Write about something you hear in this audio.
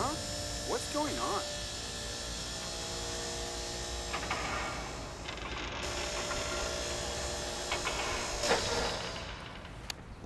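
A window-cleaning platform's motor hums steadily as it rises.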